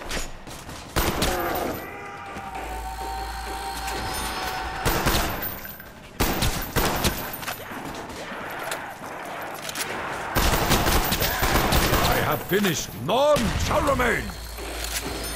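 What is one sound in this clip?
Rapid gunfire bursts out in loud, sharp cracks.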